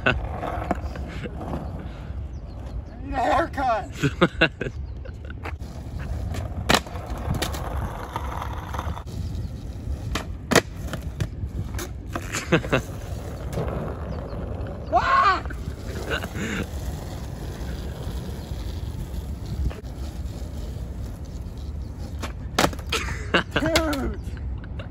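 Skateboard wheels rumble over rough concrete.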